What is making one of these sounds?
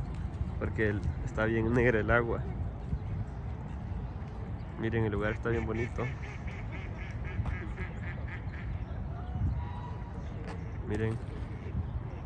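Geese honk in loud bursts across the water.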